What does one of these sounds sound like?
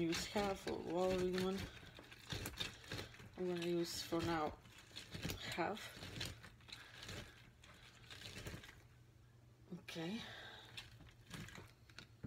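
A citrus half squelches and grinds on a plastic hand juicer.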